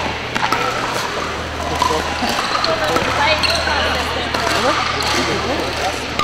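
Paddles strike plastic balls with sharp pops, echoing in a large hall.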